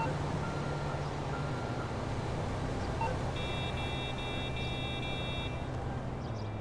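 A phone beeps as buttons are pressed.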